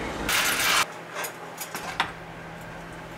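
A spoon scrapes and clinks in a pot.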